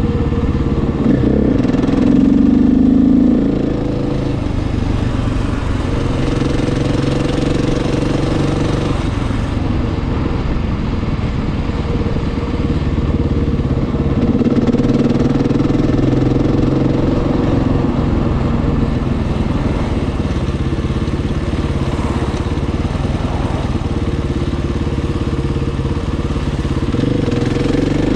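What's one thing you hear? A motorcycle engine drones up close, rising and falling in pitch as the rider speeds up and slows down.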